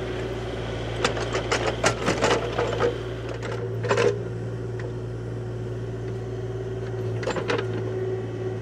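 An excavator bucket scrapes and knocks into soil.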